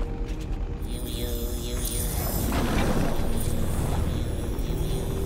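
A shimmering magical whoosh swells and rings.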